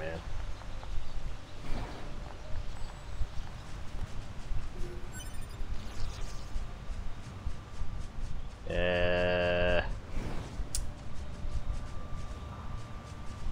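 Quick footsteps run over grass.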